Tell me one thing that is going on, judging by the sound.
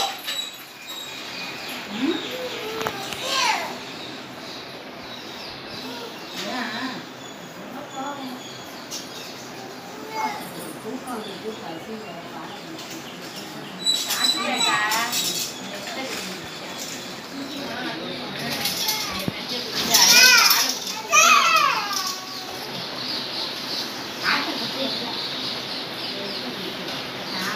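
Women talk quietly nearby in a room with a slight echo.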